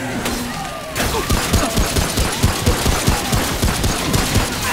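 A gun fires in rapid repeated shots.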